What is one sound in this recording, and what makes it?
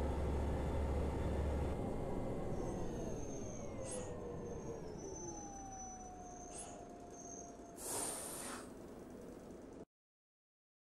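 A bus engine hums and winds down as the bus slows to a stop.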